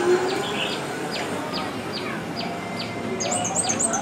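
A scooter engine hums past.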